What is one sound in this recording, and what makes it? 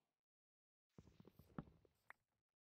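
A block breaks with quick crunching knocks.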